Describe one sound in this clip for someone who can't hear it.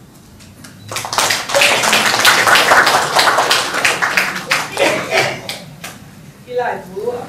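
A group of people applaud.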